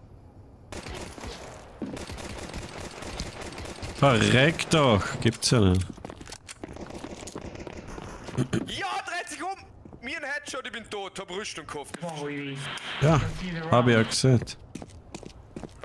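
Gunshots crack from a pistol.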